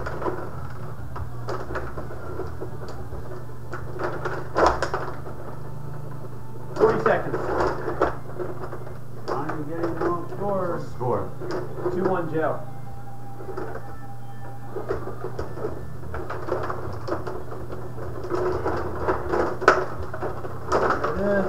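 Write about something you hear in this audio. A puck clacks against the players and the boards.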